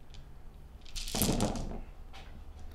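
Dice clatter as they are rolled onto a table.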